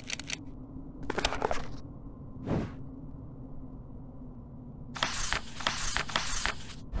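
A book's pages rustle as they turn.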